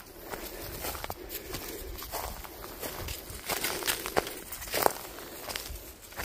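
Footsteps crunch and rustle through dry leaves and undergrowth.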